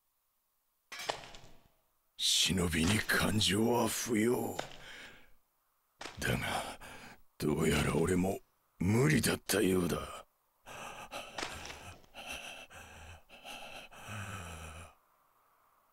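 A young man shouts in a strained, anguished voice.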